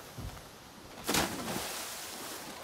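A body plunges into water with a splash.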